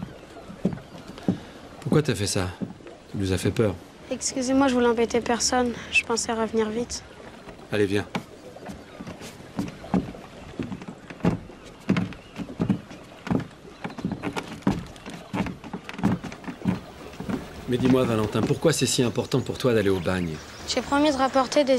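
A middle-aged man speaks calmly up close.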